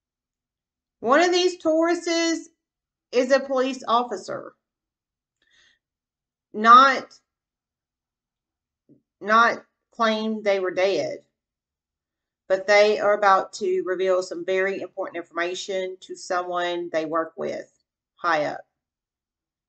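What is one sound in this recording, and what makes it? A woman speaks calmly and close by, with pauses.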